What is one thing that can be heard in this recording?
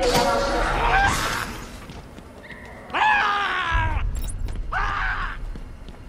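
Footsteps hurry across a hard floor.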